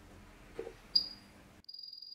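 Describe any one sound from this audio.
A soldering station beeps sharply when a button is pressed.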